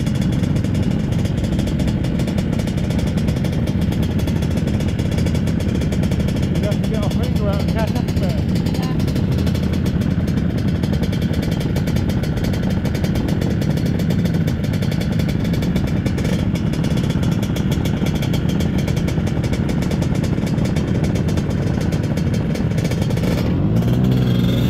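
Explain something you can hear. Several scooter engines idle close by.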